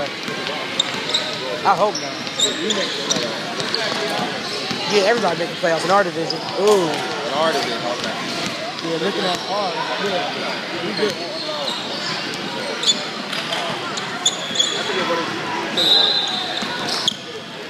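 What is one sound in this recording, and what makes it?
Spectators and players talk and call out in an echoing gym.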